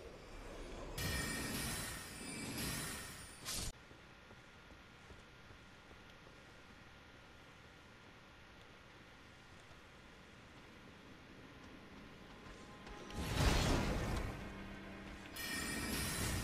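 A ghostly spell bursts with a loud rushing whoosh.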